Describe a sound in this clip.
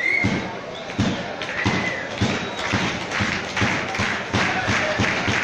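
A crowd of fans claps in a steady rhythm.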